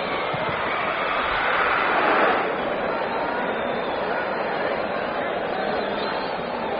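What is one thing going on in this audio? A stadium crowd roars steadily, swelling briefly and then settling.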